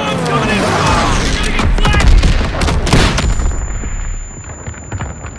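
A loud explosion booms and rumbles.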